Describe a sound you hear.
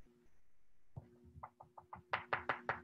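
A pastel scratches against paper in short strokes.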